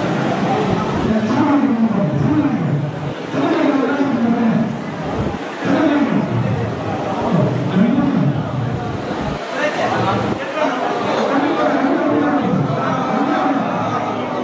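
Men talk loudly with animation close by.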